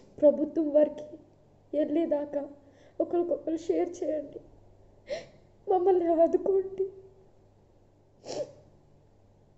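A young woman speaks tearfully and sobs into a close microphone.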